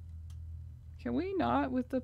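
A young woman talks briefly into a close microphone.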